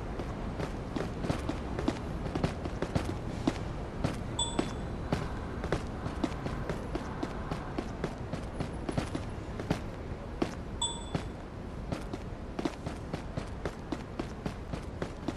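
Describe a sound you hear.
Quick footsteps run over a hard path.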